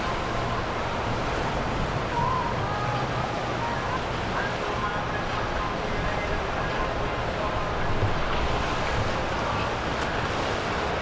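Water churns and splashes against a boat's hull.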